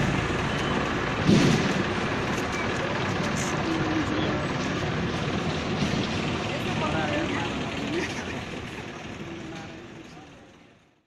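A crowd of people murmurs and talks outdoors, fading away at the end.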